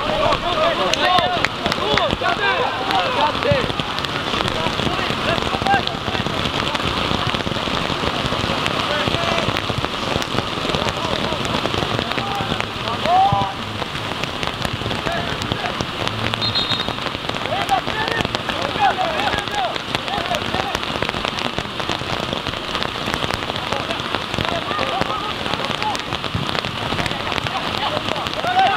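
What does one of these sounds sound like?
Rain patters steadily on an umbrella close by.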